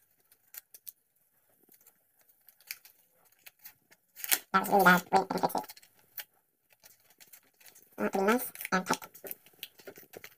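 Tape rips as it is pulled off a roll.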